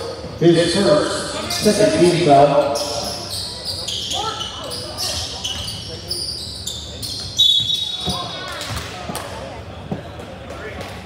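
Sneakers squeak on a wooden court in an echoing gym.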